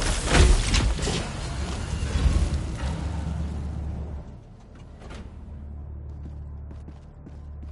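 Heavy armoured footsteps clank on a metal floor.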